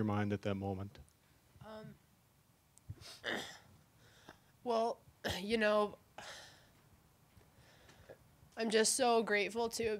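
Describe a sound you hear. A young woman speaks haltingly and emotionally into a microphone, pausing often.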